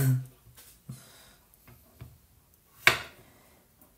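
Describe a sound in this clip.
A knife taps on a wooden cutting board.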